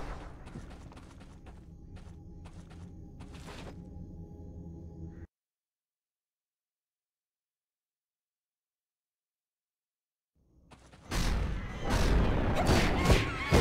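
Flames crackle and roar.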